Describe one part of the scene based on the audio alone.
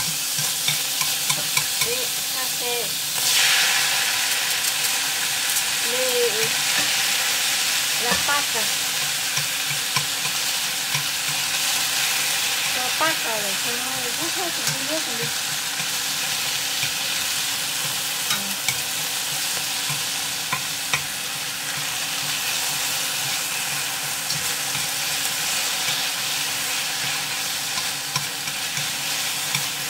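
Food sizzles and hisses steadily in a hot pan.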